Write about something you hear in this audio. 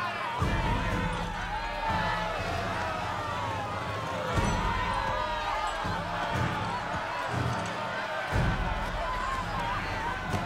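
A crowd of women wails and cries out loudly.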